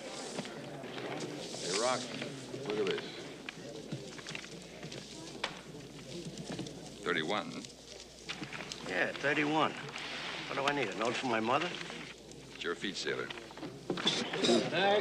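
A man speaks loudly, addressing a crowd.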